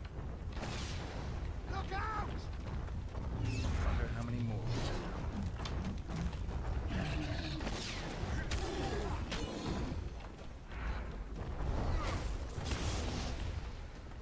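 Swords clash and strike with sharp metallic blows.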